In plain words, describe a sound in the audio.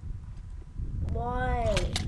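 An arrow whizzes past.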